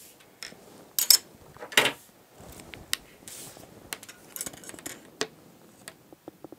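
A measuring tape rattles and clatters against a table.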